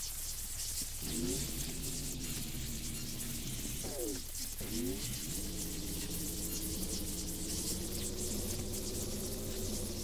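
An electric zap crackles and buzzes.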